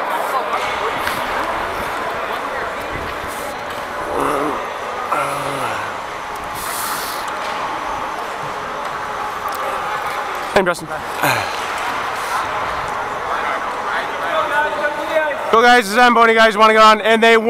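A man talks to nearby players close by.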